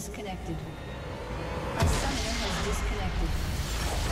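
Game spell effects blast and crackle.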